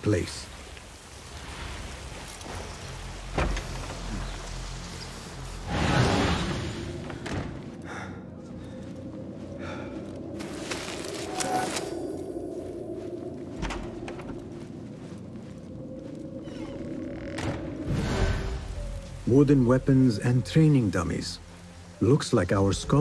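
Footsteps patter softly on stone.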